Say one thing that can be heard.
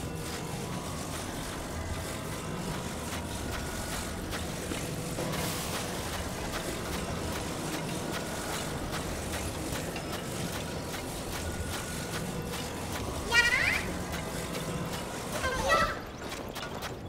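A magical beam hums steadily.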